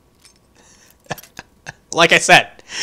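A lockpick snaps with a sharp metallic crack.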